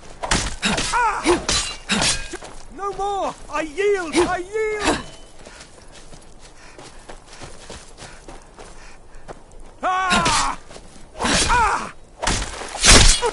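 A sword strikes repeatedly with sharp hits.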